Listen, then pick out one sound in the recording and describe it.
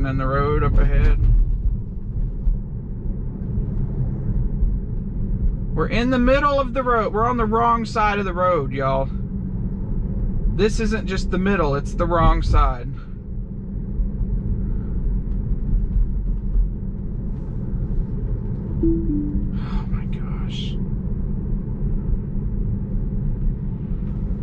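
A car drives along a road with a steady low rumble of tyres.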